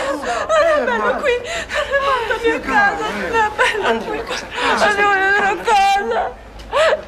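A woman sobs.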